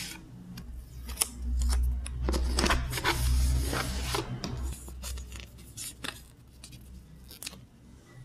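A sticker peels off its backing sheet.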